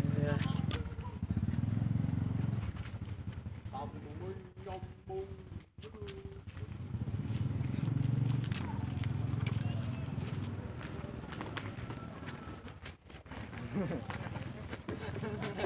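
A group of people walks with shuffling footsteps on a dirt road.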